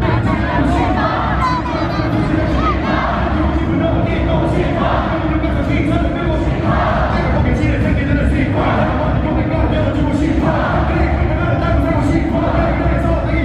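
Loud music with a heavy beat plays through loudspeakers.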